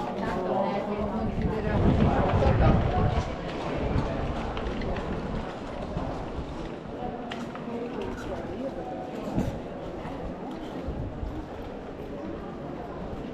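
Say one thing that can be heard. Men and women talk and murmur at a distance outdoors.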